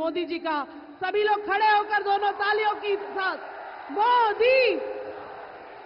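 A woman speaks forcefully into a microphone over loudspeakers, with an echo.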